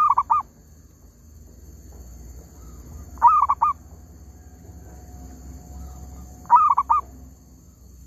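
A bird chirps in short bursts of quick notes.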